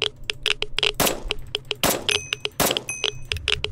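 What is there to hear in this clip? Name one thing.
Gunshots bang sharply a few times.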